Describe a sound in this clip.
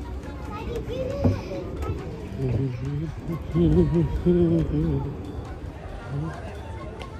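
Adults talk nearby.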